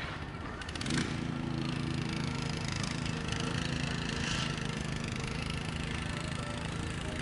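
A small dumper's engine idles nearby with a steady hum.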